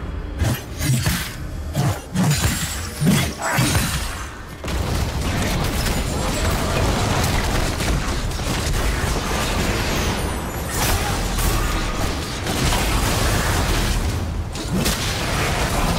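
Magic blasts and clashing hits of a fight ring out rapidly.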